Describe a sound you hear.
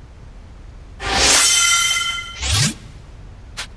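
A bright game chime rings out with a shimmering jingle.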